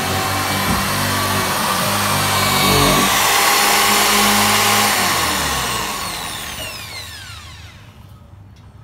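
A power drill whirs loudly, boring into wood, then winds down.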